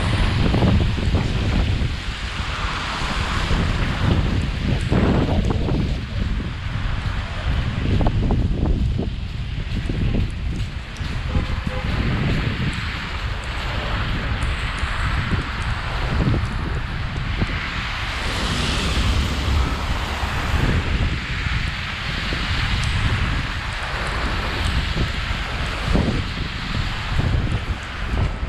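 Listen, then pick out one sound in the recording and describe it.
Cars hiss past on a wet, slushy street.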